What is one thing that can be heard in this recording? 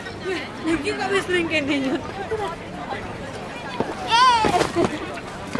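Men and women in a crowd chat outdoors.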